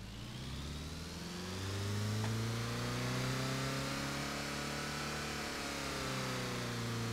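A car engine revs up and holds a high steady whine, then eases off.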